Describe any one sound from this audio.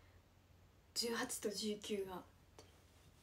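A young woman speaks briefly and calmly, close to the microphone.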